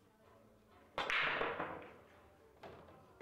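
Billiard balls break apart and clack loudly against each other.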